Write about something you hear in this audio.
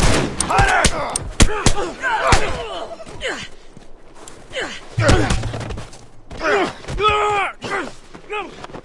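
Heavy blows and thuds land in a close fight.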